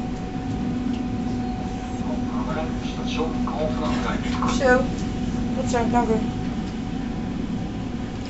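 A train hums and rumbles steadily while moving.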